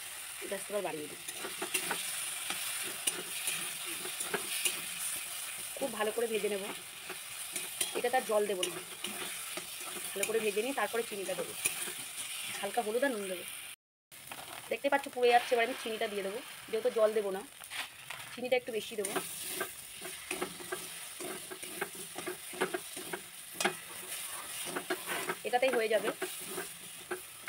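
A metal spatula scrapes and clinks against a wok.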